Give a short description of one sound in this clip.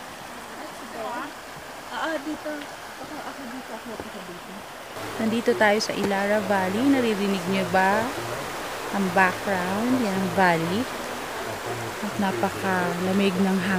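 A shallow river rushes and babbles over stones.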